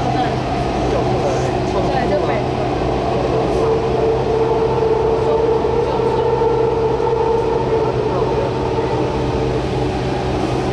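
Train wheels squeal and whine on the rails.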